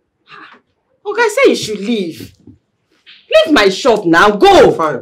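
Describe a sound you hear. A woman speaks forcefully nearby.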